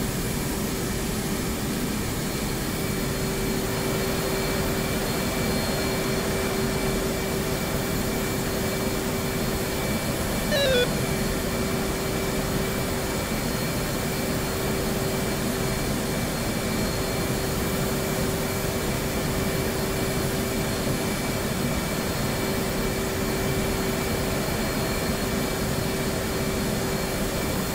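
A jet engine hums steadily at idle, heard from inside the cockpit.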